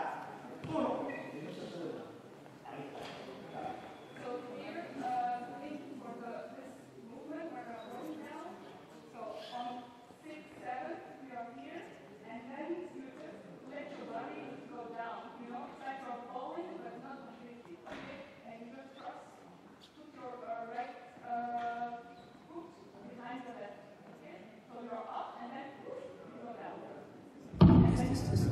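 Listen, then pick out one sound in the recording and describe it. A man talks calmly and instructs in a large echoing hall.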